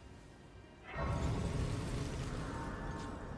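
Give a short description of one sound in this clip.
A shimmering chime swells up.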